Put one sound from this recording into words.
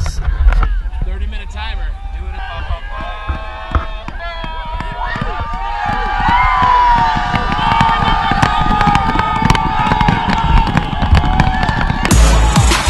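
A large crowd of men shouts and cheers loudly outdoors, growing louder.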